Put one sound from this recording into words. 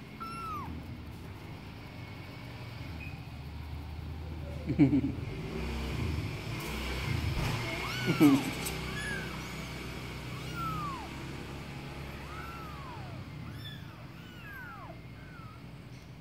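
Small kittens mew in high, thin cries.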